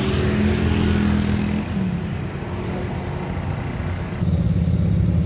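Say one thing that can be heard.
Motorcycle engines idle close by.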